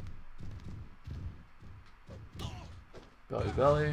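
A body thuds heavily onto a wrestling ring mat.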